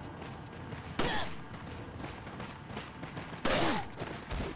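A handgun fires with a sharp bang.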